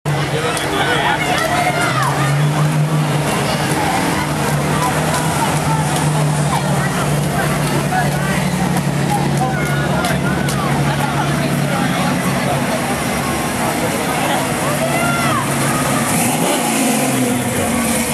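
A classic car engine rumbles as cars drive slowly past.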